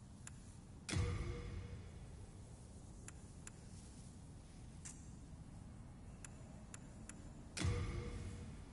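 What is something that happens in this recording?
A heavy metallic thud rings out.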